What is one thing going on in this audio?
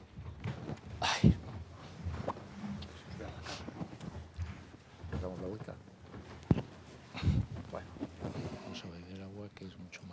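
Chairs creak and scrape as people sit down.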